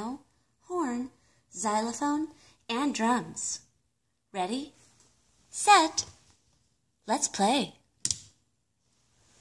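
A toy music player speaks and sings short cheerful phrases through a small tinny speaker.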